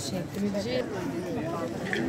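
People talk nearby in a busy crowd.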